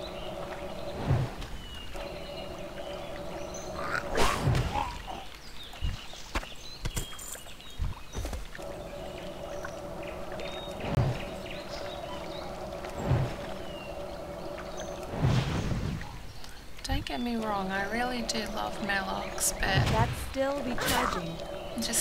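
Magic spells burst with sharp, whooshing blasts again and again.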